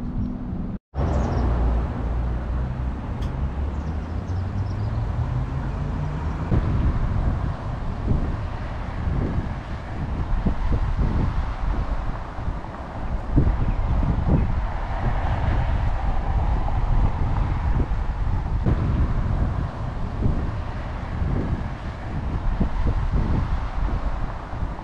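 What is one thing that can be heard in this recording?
Wind gusts and rumbles across the microphone outdoors.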